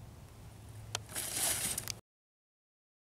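A model plane skids to a stop in grass.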